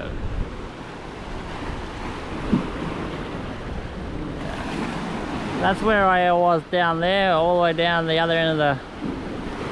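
Small waves wash against rocks.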